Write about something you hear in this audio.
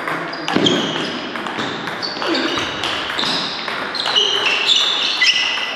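Table tennis balls click sharply off paddles and tables in an echoing hall.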